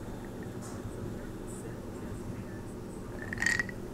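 An older man gulps a drink from a glass, close to the microphone.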